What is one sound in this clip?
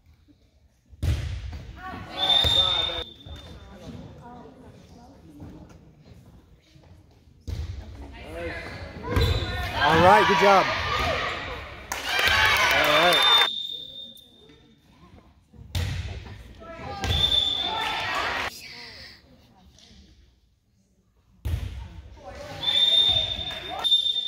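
A crowd of spectators cheers and shouts in bursts.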